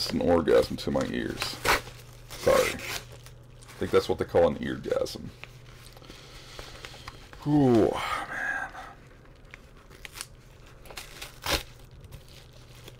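Paper rustles and crinkles in a man's hands.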